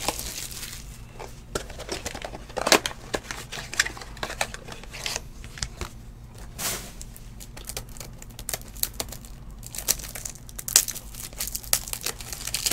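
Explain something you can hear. Cardboard and plastic wrappers rustle and crinkle in hands close up.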